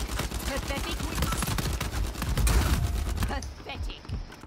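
Rapid gunshots crack.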